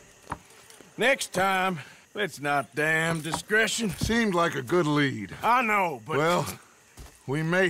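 A second man talks with animation, close by.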